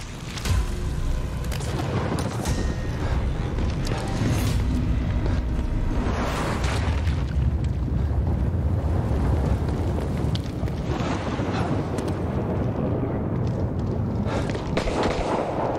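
Footsteps splash on wet pavement.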